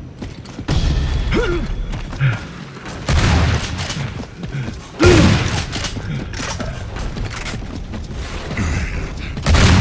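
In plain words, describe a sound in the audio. Heavy boots thud on the ground while running.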